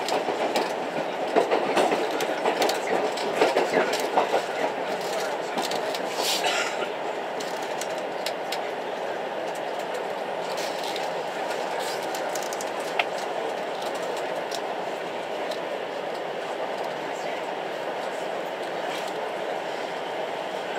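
A passenger train rumbles along the rails, heard from inside a carriage.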